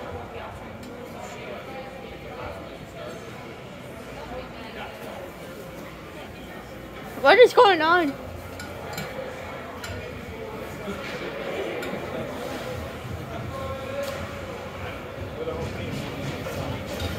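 A crowd of spectators murmurs in a large echoing arena.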